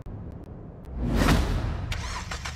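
A car engine starts up with a roar.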